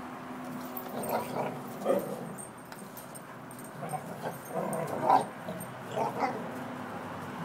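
Dogs bark sharply now and then.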